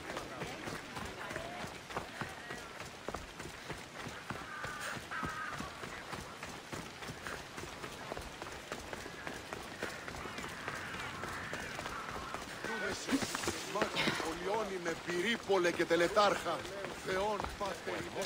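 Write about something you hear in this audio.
Footsteps run quickly over gravel and stone.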